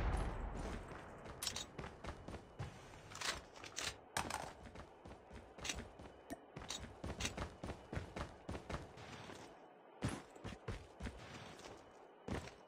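Footsteps thud quickly.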